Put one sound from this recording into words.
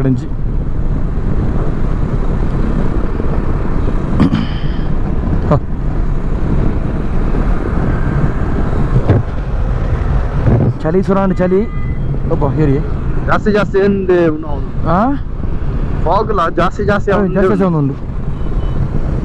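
Wind rushes loudly past a fast-moving motorcycle.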